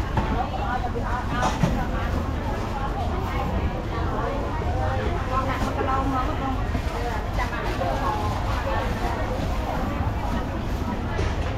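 Several people chatter in the background.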